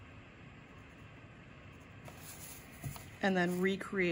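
A wooden ruler is set down on paper with a soft tap.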